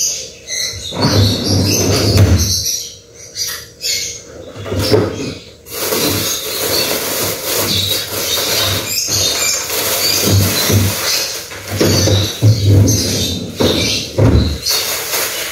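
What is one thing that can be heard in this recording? Things knock and clatter as a woman rummages.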